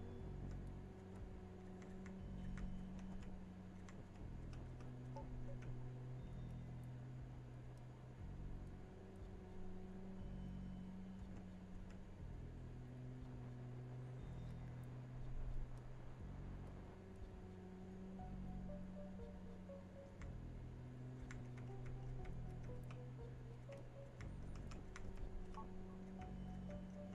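Soft, slow electronic music plays steadily in a loop.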